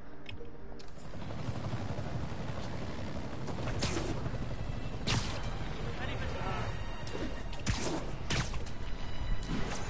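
Game sound effects whoosh and thud.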